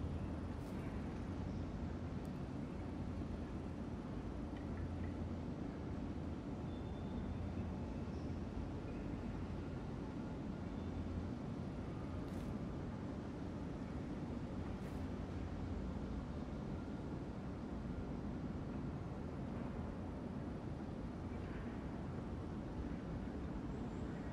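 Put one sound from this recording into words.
A ceiling fan hums steadily with a low drone.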